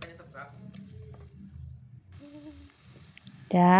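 A spatula scrapes and stirs vegetables in a sizzling pan.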